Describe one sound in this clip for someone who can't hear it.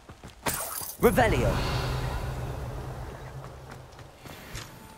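A magic spell bursts with a shimmering whoosh and slowly fades.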